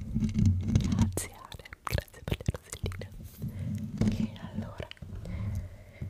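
Fingers tap and scratch on a microphone's foam cover.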